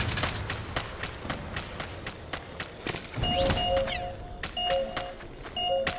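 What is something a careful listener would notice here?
Footsteps run over gravel.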